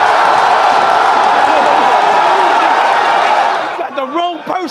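A crowd cheers and shouts loudly in a large room.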